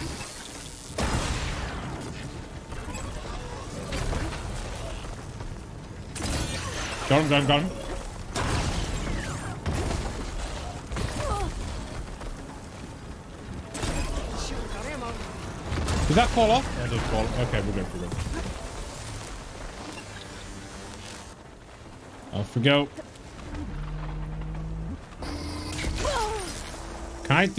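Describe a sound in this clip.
Explosions and blasts boom in a video game.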